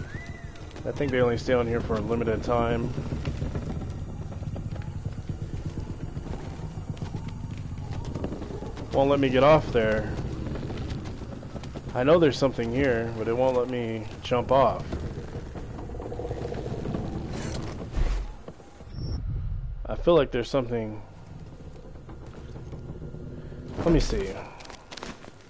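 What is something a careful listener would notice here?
A young man speaks in short bursts into a close microphone.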